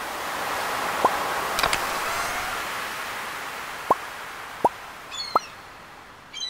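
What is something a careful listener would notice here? Short soft pops sound as a menu opens and items are picked.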